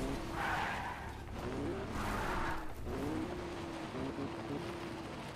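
A car engine hums and its pitch rises and falls as it drives.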